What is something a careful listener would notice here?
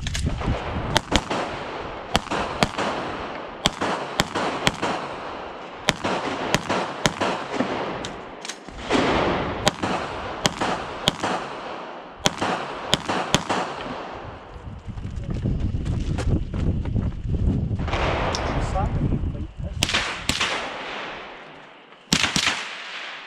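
Pistol shots crack loudly in rapid bursts outdoors, with a short echo.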